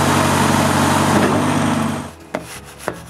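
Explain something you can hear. A machine rumbles loudly nearby.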